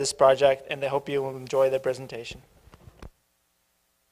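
A man speaks into a microphone in a large hall.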